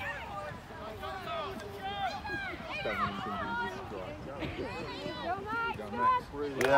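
Young players shout and call to each other outdoors across an open field.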